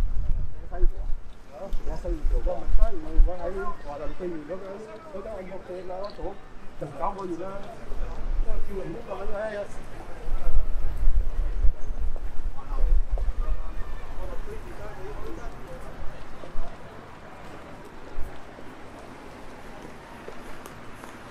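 Traffic rumbles steadily through a busy city street outdoors.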